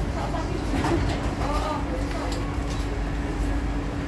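People's footsteps shuffle out of a train.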